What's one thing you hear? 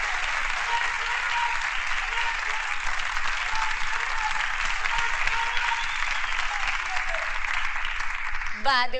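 An audience claps and applauds steadily.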